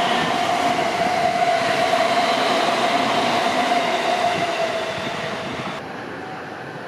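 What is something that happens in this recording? A train rumbles along the tracks and fades into the distance.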